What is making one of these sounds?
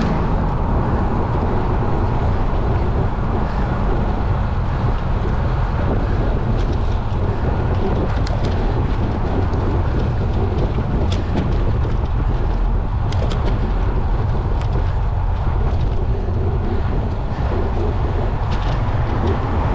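Tyres roll over the road surface.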